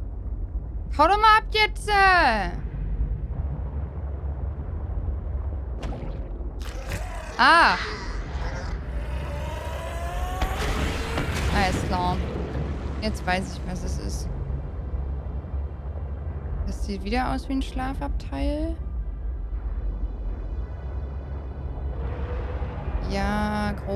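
A young woman talks into a close microphone with animation, in short bursts.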